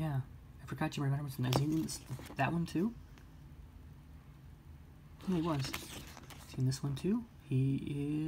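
Stiff paper pages rustle as they are turned.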